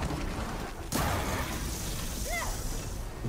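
Electric sparks crackle and fizz close by.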